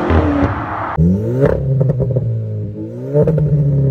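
A car engine idles with a deep rumble and revs up sharply.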